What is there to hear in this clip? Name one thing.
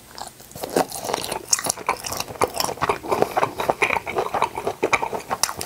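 A man chews food loudly and wetly, close to a microphone.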